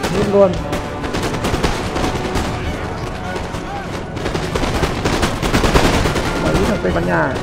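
Cannons boom in the distance.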